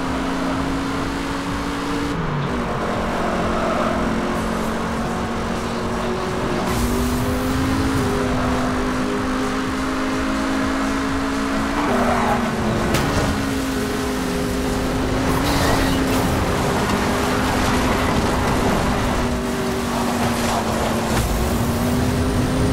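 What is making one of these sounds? A car engine roars at high speed, with its pitch stepping up and down as gears change.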